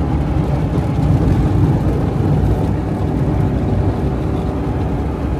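A car engine rumbles steadily from inside the cabin.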